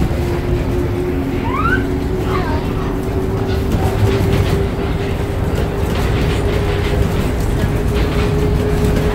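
A train car rumbles and hums steadily along its track.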